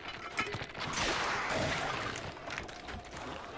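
A weapon shatters with a bright burst.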